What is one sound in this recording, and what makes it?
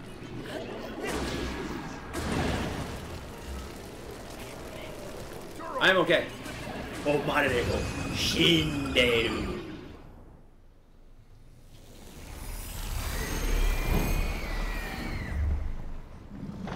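Heavy booming impacts rumble during a fight.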